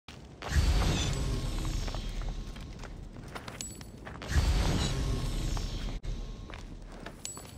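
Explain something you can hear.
Footsteps run over a stone floor.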